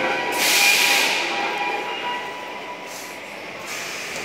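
A subway train's wheels screech and rumble as the train pulls into an echoing station.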